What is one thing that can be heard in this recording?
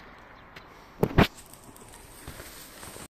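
Tall dry grass rustles and brushes close by.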